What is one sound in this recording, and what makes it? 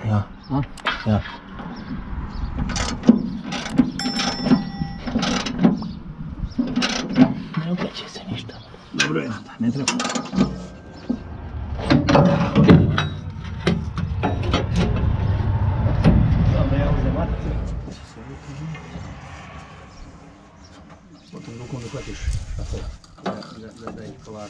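Metal parts clank and click as they are handled.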